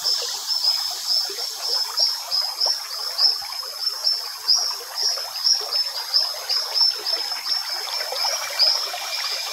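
Dry seeds clack softly together on hanging strings.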